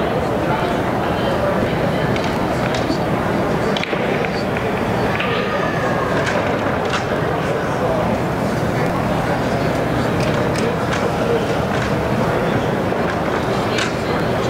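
Billiard balls click and clack against each other.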